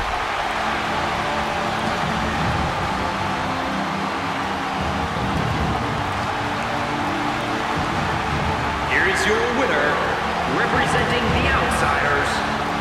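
A large crowd cheers and roars steadily in a big echoing arena.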